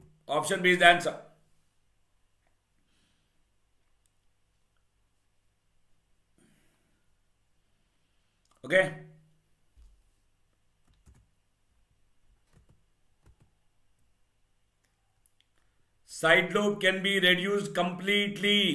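A man speaks with animation into a close microphone, in short bursts with long pauses.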